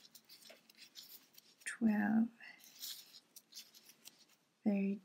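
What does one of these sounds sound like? A crochet hook softly scrapes and clicks through yarn.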